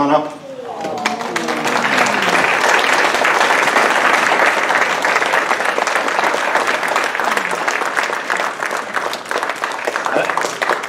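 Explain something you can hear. A crowd applauds loudly and steadily in a large room.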